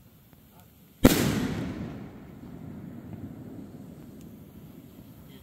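An aerial firework shell bursts with a loud boom that rolls away outdoors.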